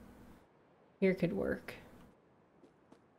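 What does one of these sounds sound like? A young woman speaks briefly into a close microphone.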